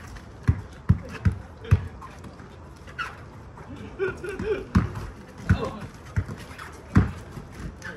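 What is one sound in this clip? A basketball bounces on an outdoor sport court as it is dribbled.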